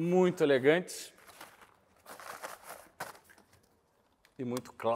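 Items rustle and bump.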